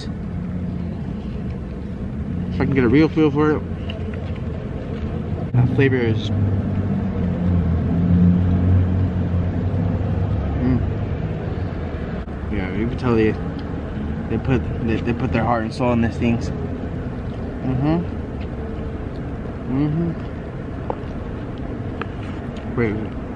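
A young man chews food with his mouth full.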